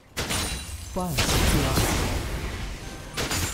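A magic blast booms with a crackling rush.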